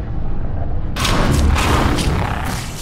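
Wooden boards smash and splinter with a loud crash.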